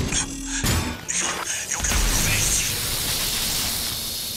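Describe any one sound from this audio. Electricity crackles and buzzes sharply.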